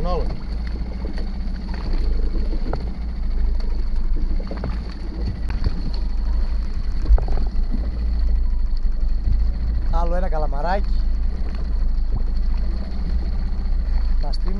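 Wind blows steadily over open water.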